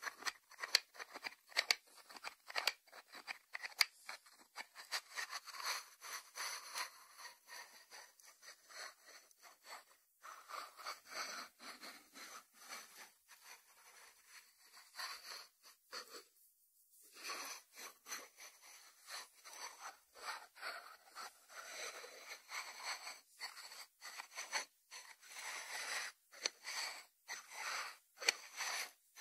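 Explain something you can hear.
Fingertips tap and scratch on a ceramic lid.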